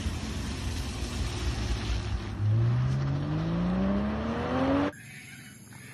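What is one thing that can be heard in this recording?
A sports car engine revs up while drifting.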